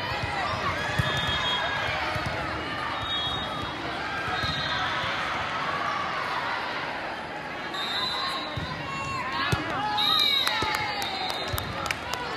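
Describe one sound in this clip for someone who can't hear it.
Young girls call out to one another on the court.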